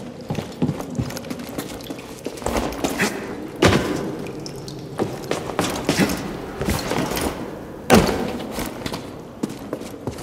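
A character lands hard on rock after a jump.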